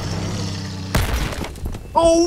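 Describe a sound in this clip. A heavy vehicle crashes with a loud thud.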